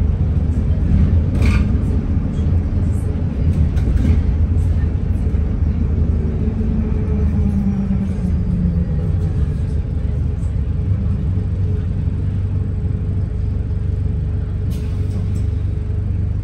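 Loose fittings rattle now and then as the bus bumps along.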